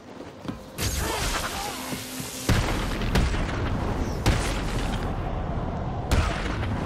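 Men grunt in pain as they are struck.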